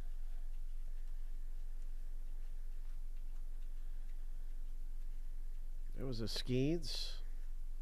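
Trading cards flick and rustle softly as they are flipped through by hand.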